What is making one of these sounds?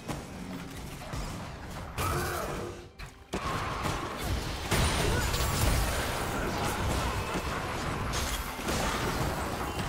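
Magic spells whoosh and crash in a fast game battle.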